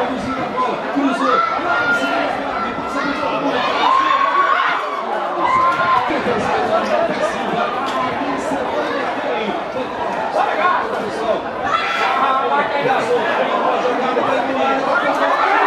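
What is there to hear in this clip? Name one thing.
Men shout to each other across an open outdoor field.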